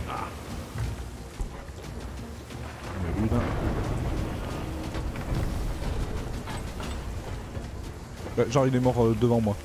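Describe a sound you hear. Heavy rain pours steadily.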